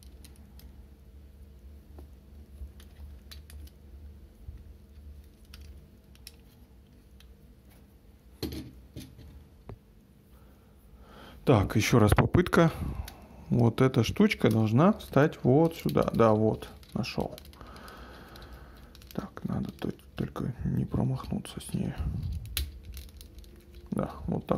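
Small plastic parts of a toy click and snap as the toy is handled.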